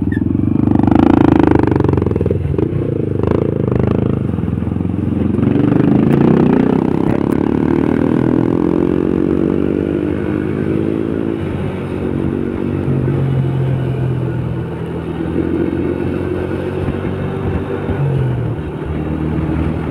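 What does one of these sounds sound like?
A scooter engine hums steadily, rising and falling with speed.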